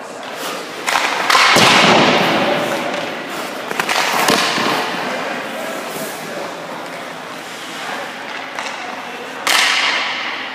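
A puck cracks against a hockey stick.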